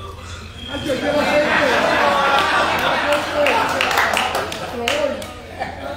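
A group of people applauds and cheers.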